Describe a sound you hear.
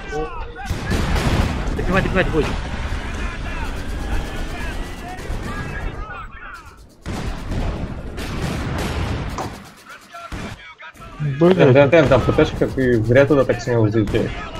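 Explosions boom in a battle.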